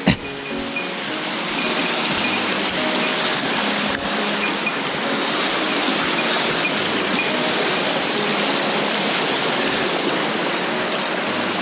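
A shallow stream rushes steadily over rocks.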